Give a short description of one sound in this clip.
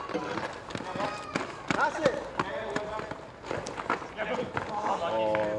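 Sneakers squeak sharply on the hard court.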